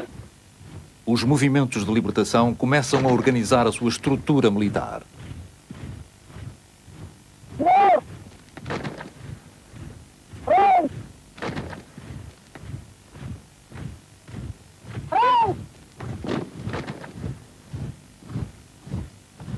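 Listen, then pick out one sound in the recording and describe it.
Rifles clack and rattle as a line of soldiers drills.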